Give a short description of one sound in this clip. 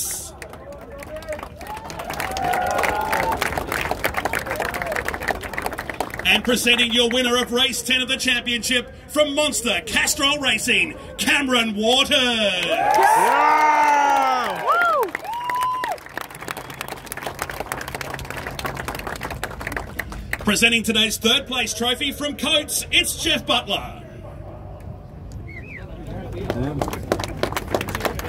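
A large outdoor crowd cheers loudly.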